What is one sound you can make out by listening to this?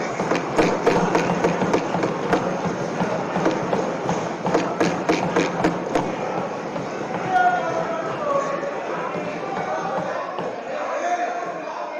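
A crowd laughs loudly in an echoing hall.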